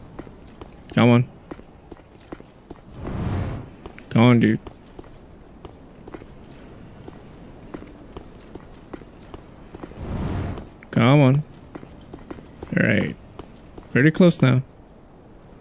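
A young man speaks in short bursts close to a microphone.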